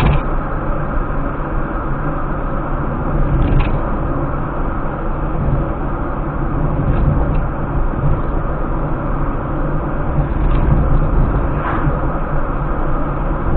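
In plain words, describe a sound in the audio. Tyres rumble steadily over a road.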